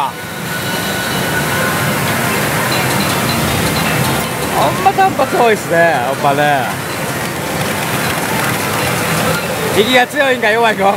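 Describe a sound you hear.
Pachinko machines clatter and chime in a noisy hall.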